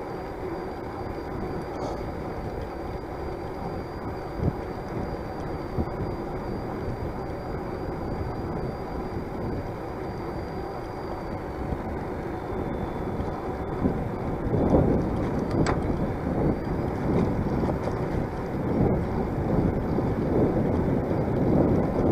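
A bicycle rolls steadily along a paved path.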